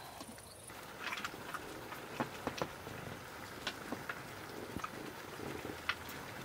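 A utensil clicks lightly against a dish.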